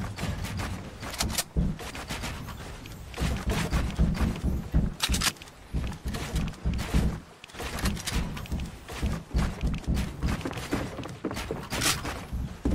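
Building pieces clack into place in quick succession.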